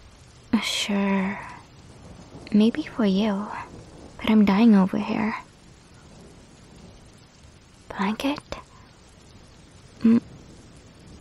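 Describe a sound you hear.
A young woman speaks softly and shyly, close to a microphone.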